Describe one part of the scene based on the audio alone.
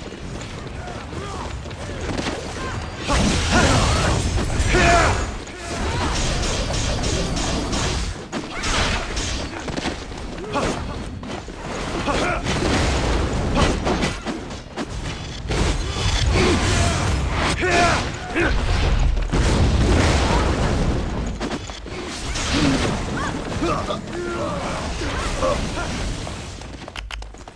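Sword slashes and magic blasts crash and whoosh in a fast fight.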